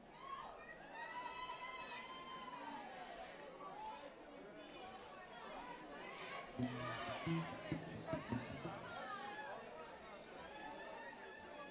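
A crowd cheers and whistles in a large hall.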